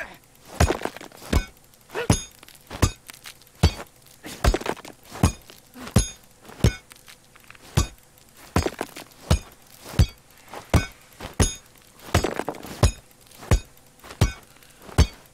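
Heavy punches thud against wood again and again at a steady pace.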